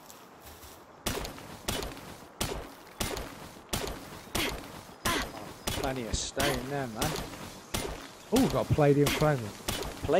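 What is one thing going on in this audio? A pickaxe strikes rock again and again in sharp, even blows.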